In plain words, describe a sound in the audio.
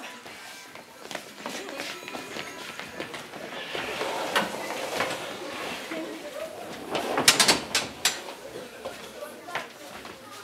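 Footsteps thump on a wooden stage.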